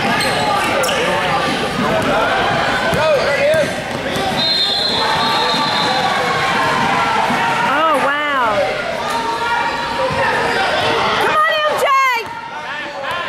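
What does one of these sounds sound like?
Young players call out to each other across an echoing hall.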